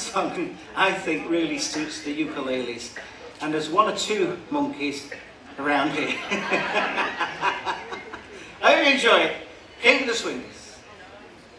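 A man speaks with animation to an audience in a large echoing hall.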